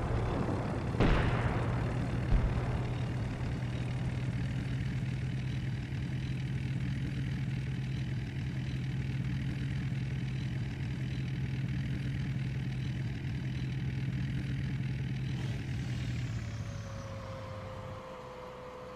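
A tank's engine rumbles steadily as the tank drives along.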